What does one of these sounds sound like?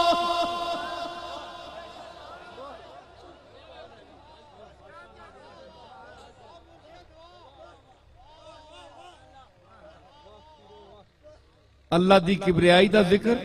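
A man chants and speaks in a drawn-out, singing voice through a microphone.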